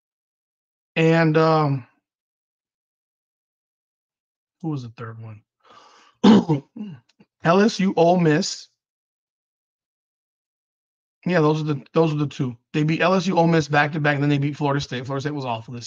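A man talks with animation into a close microphone, in bursts with pauses.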